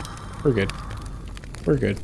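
A fire crackles and roars.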